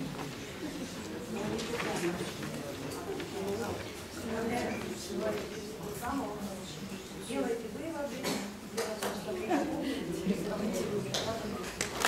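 A woman talks calmly to a young man.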